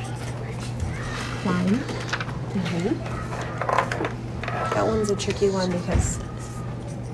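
A woman speaks calmly and clearly to children nearby.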